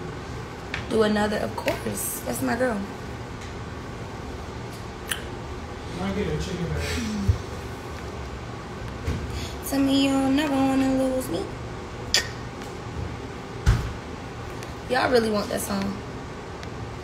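A young woman talks casually and close up, with pauses between her phrases.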